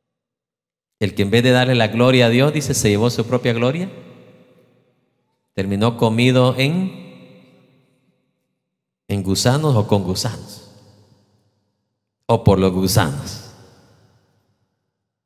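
A middle-aged man speaks with animation through a microphone in a large echoing hall, in short bursts with pauses.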